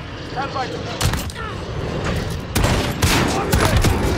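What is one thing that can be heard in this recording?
A sniper rifle fires in a video game.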